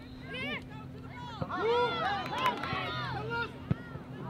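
Adult spectators nearby cheer and call out.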